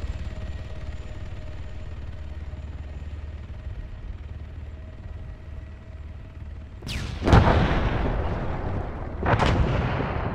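An aircraft drones overhead.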